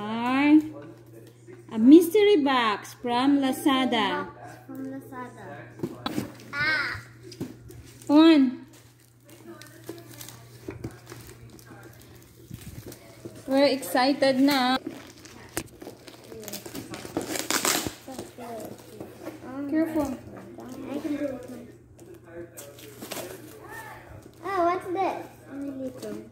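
Cardboard boxes rustle and scrape as children open them.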